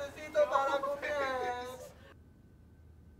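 A young man talks with animation nearby.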